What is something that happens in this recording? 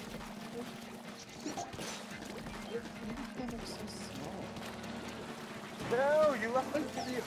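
Video game splashing and squishing effects play.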